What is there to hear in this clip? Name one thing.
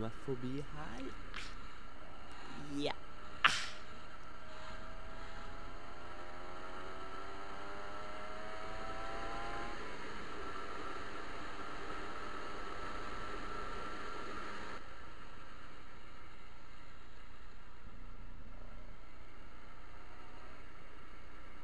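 A motorcycle engine hums steadily and rises in pitch as it speeds up.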